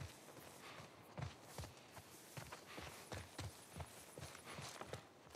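Footsteps thud steadily on grass and hard ground.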